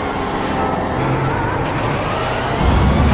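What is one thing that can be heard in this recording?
A racing car engine revs up again as the car accelerates.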